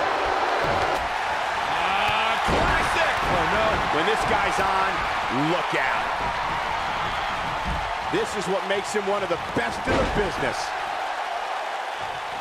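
Wrestlers' bodies slam and thud onto a ring mat.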